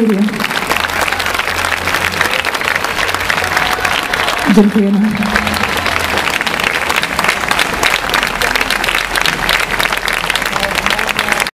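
A large crowd claps and applauds outdoors.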